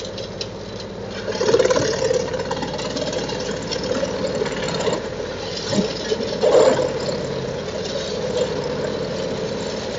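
Branches crack and snap as a grab loads them into a chipper.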